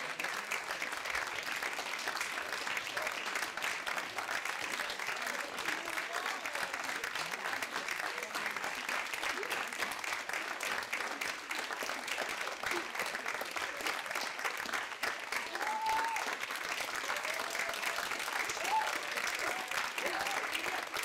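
A large audience applauds steadily in an indoor hall.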